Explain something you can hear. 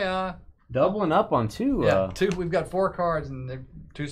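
A plastic card sleeve crinkles as hands slide a card out.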